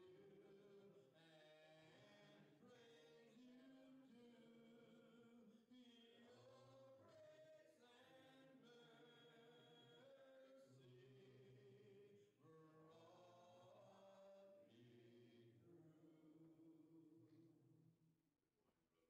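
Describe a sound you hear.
A man sings into a microphone, heard through loudspeakers in a hall.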